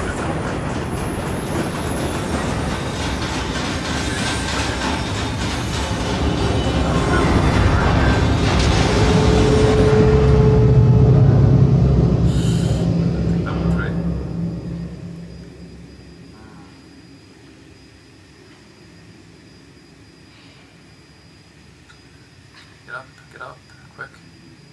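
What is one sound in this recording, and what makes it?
A man speaks quietly into a close microphone.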